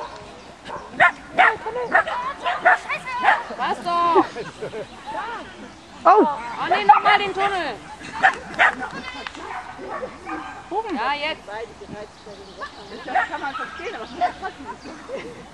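A man calls out commands to a dog with animation outdoors.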